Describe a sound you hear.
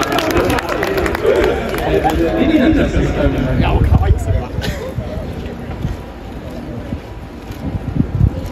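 A young man speaks through a microphone over loudspeakers in a large echoing stadium.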